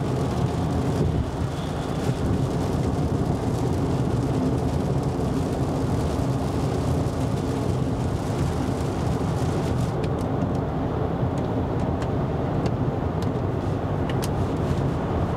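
A car engine hums steadily with road rumble from inside the cabin.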